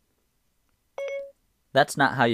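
A phone gives a short electronic chime.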